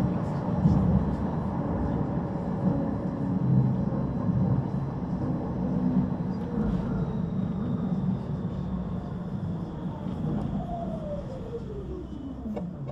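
A tram rumbles steadily along the rails.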